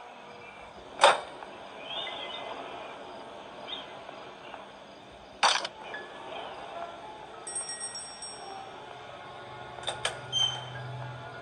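Sharp bangs from a video game sound through a tablet speaker.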